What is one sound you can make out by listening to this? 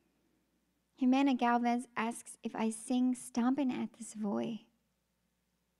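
A young woman sings into a microphone, close and clear.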